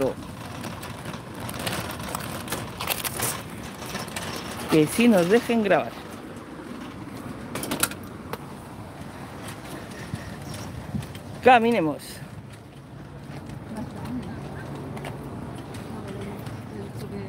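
A shopping cart's plastic wheels rattle over rough asphalt.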